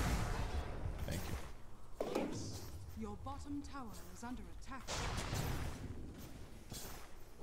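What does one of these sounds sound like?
Game spell and combat effects crackle and whoosh.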